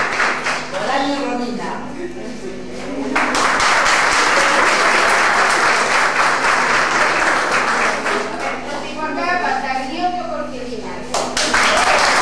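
A middle-aged woman speaks aloud, announcing calmly between rounds of applause.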